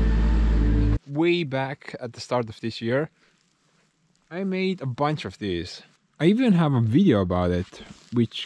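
A young man talks calmly and closely to the listener.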